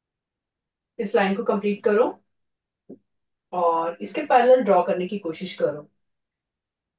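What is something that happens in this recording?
A woman speaks clearly to a class.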